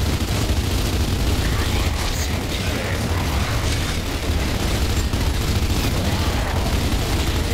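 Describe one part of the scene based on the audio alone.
An automatic rifle fires in rapid, continuous bursts.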